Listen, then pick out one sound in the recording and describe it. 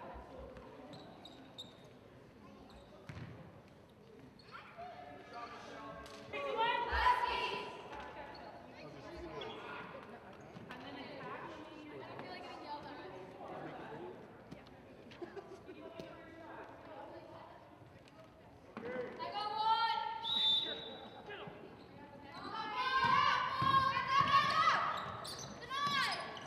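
Young women call out and shout to each other in a large echoing gym.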